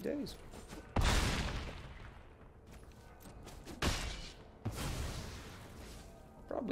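Game sound effects whoosh and thud as cards attack.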